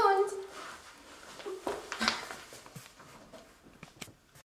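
Young women laugh.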